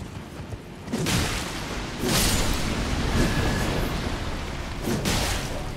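A sword slashes and strikes creatures in heavy hits.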